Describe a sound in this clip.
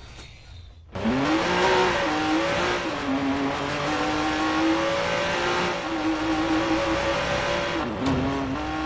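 A sports car engine roars and revs loudly.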